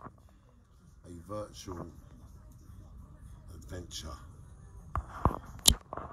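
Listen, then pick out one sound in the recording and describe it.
A man talks calmly, close to the microphone.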